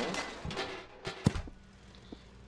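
A metal can lands and clatters on the ground.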